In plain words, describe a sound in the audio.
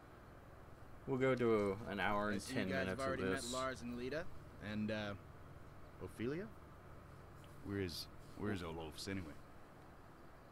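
A man speaks in a gruff, casual voice.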